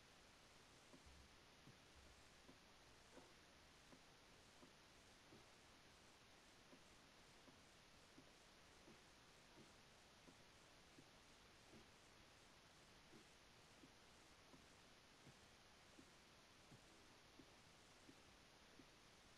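Footsteps tap steadily on a wooden ladder while climbing.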